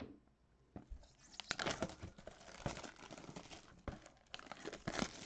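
Plastic wrap crinkles and rustles as a box is handled.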